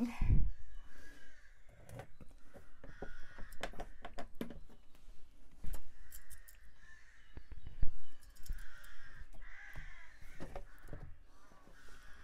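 A hand dabs and taps at a canvas with soft knocks.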